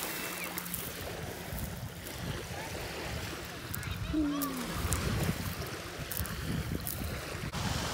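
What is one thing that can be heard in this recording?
Pebbles clink and rattle under a hand.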